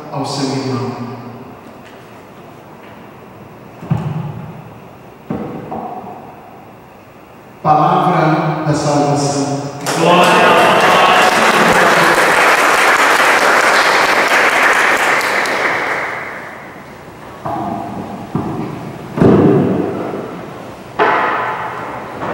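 A man sings and chants through a microphone in a large echoing hall.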